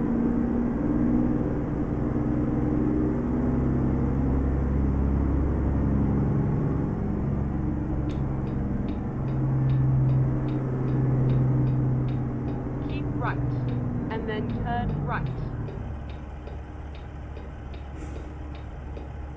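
A truck engine hums steadily and slowly changes pitch.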